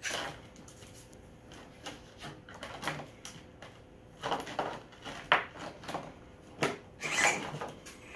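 Footsteps thump on a wooden board.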